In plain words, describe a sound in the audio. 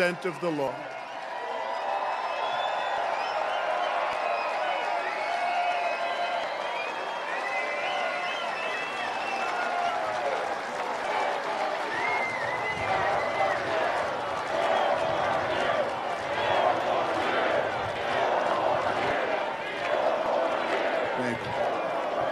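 A large crowd claps and applauds.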